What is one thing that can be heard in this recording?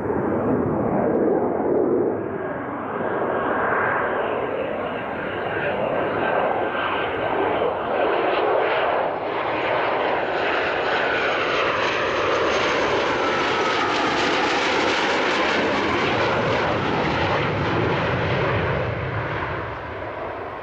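A jet engine roars loudly and grows louder as a fighter jet approaches and passes close by.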